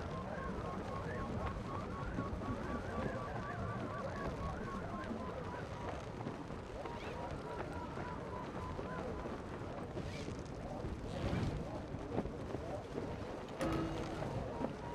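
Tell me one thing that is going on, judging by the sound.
Wind rushes steadily past a paraglider in flight.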